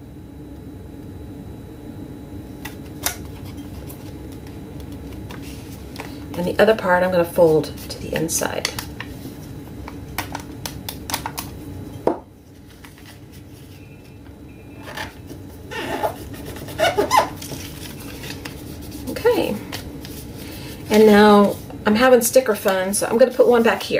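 Paper rustles and crinkles as it is folded and pressed.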